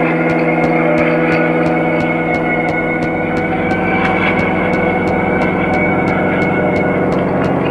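Quick footsteps tap steadily on a hard floor.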